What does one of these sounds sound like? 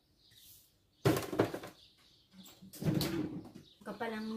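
A fridge door thuds open and shut.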